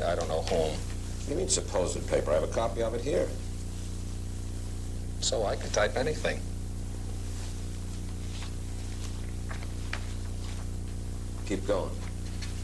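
A middle-aged man speaks slowly, with long pauses, close to a microphone.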